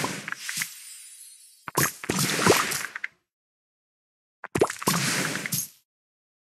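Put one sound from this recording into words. Game candies burst and chime in quick bursts of bright, sparkling sound.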